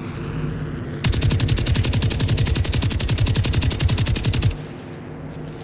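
A rifle fires a rapid automatic burst.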